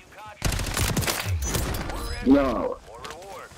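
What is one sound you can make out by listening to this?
An explosion booms close by.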